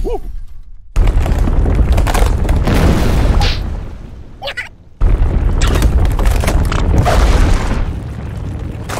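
Cartoon dirt crumbles and rumbles as the ground caves in.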